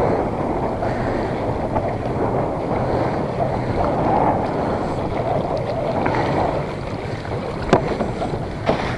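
Wind blusters steadily outdoors.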